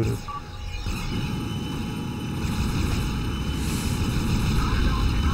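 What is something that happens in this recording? Energy weapons fire with rapid zapping bursts.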